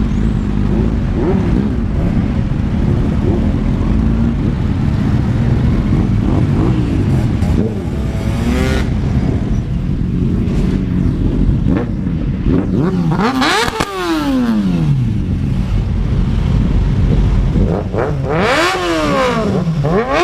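Other motorcycles rev their engines, rising and falling in pitch.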